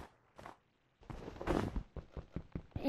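A block crumbles and breaks with a crunch.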